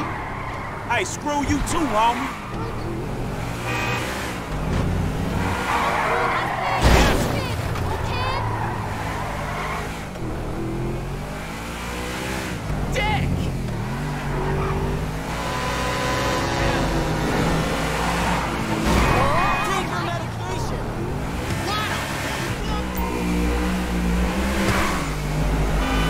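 A car engine revs and roars steadily.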